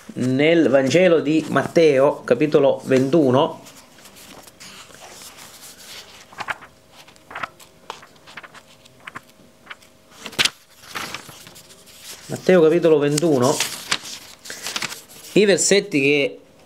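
Paper pages rustle and flip as a book's pages are turned.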